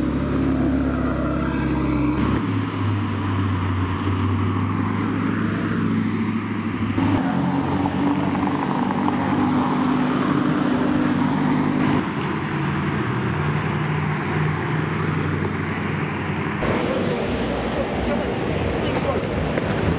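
A sports car engine rumbles and revs loudly close by.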